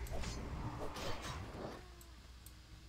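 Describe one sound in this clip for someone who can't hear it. Weapons clash and spells burst in a brief fight.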